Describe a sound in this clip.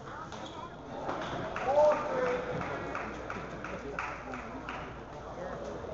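A crowd applauds and cheers in an echoing hall.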